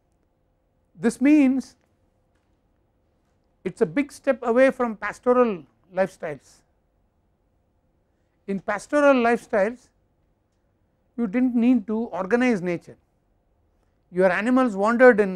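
An elderly man speaks calmly through a clip-on microphone, in short phrases with pauses.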